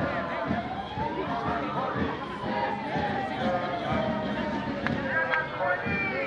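A crowd of protesters chants and talks loudly outdoors.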